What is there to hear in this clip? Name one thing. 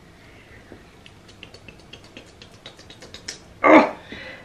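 Small pieces of clay tap and click against a wooden tray.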